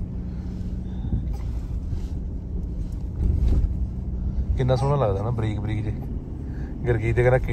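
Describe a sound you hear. A car's tyres and engine rumble low and steady on the road.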